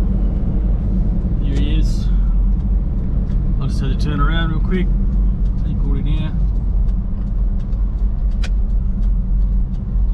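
A vehicle engine hums steadily with road rumble.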